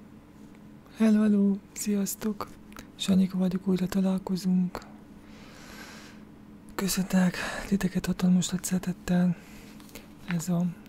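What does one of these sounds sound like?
A young man speaks calmly and close to a microphone.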